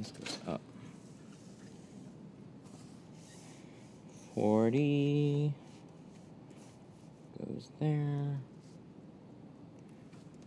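Hands rub and smooth a plastic sheet.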